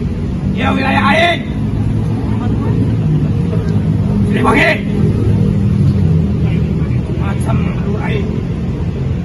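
A young man talks loudly outdoors.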